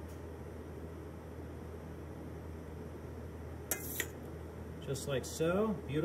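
A metal spoon taps and scrapes on a plate.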